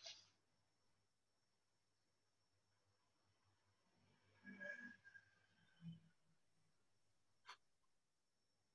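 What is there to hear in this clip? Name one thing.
A brush dabs and scrapes softly on paper.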